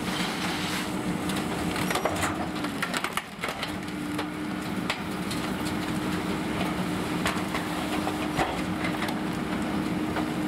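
A garbage truck engine idles with a steady hum.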